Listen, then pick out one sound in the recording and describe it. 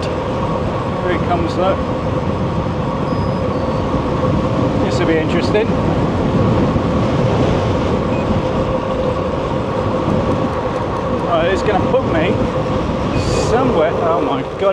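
Wind rushes loudly past while riding outdoors.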